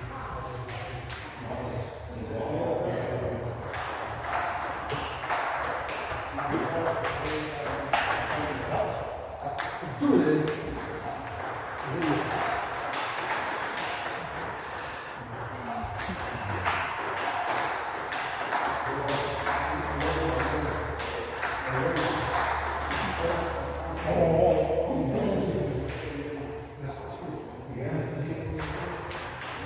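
Table tennis balls click quickly back and forth on tables and paddles in a large echoing hall.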